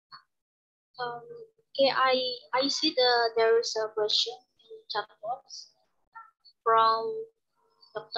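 A young woman speaks calmly through a microphone on an online call.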